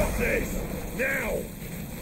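Electricity crackles sharply.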